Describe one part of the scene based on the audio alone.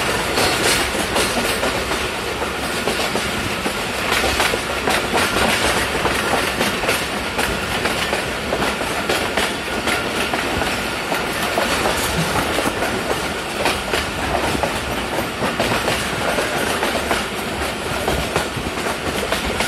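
A train rattles along the rails, heard from inside a carriage.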